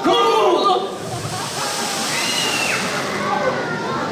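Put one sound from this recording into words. A firework fountain hisses and sprays sparks.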